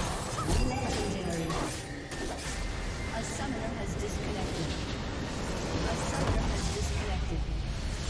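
Game spells and attacks crash and burst loudly.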